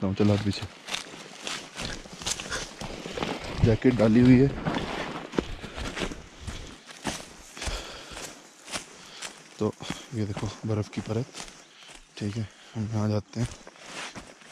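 A man talks close by, calmly.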